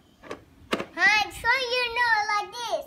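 A young girl sings in a high, lively voice close by.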